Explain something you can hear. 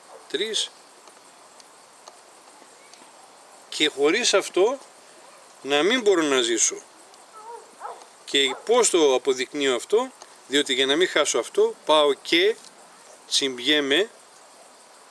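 A middle-aged man speaks calmly and thoughtfully, close by, with pauses.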